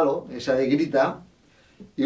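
Guitar strings are plucked.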